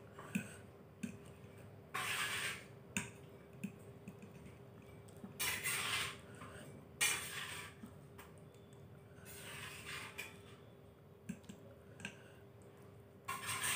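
A fork clinks on a plate.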